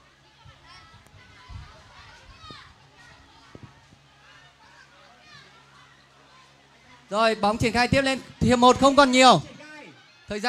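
Water splashes as children wade and swim.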